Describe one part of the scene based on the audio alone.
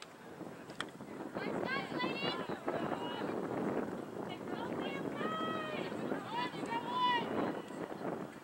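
A crowd of spectators cheers and shouts in the distance.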